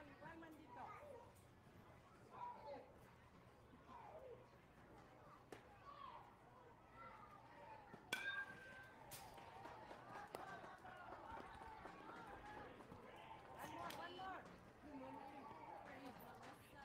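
Young players shout and chatter across an open field.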